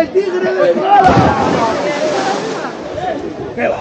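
A body splashes hard into water.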